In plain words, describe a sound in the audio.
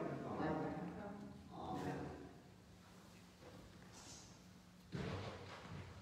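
A man speaks or chants slowly in a large echoing hall.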